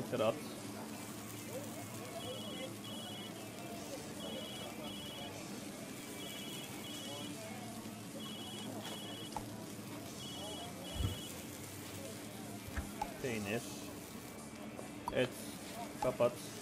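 Meat patties sizzle on a hot grill.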